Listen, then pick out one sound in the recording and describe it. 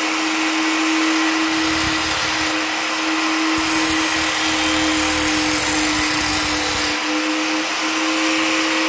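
An angle grinder whines loudly at a steady high pitch.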